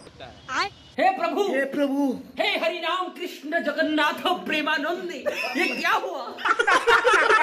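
A young man sings loudly close by.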